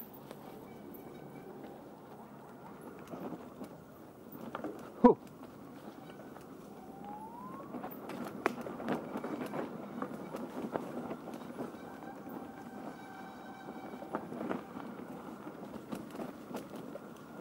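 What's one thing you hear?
Bicycle tyres roll and crunch over a dirt trail covered in dry leaves.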